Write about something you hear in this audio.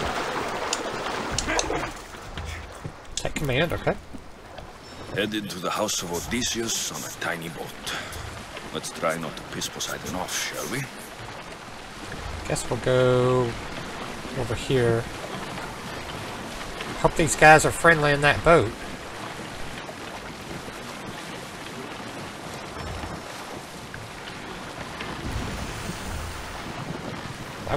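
Water splashes and swishes against the hull of a sailing boat.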